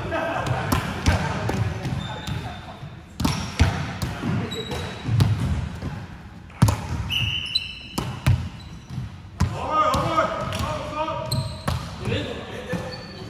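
A volleyball is struck with sharp slaps that echo in a large hall.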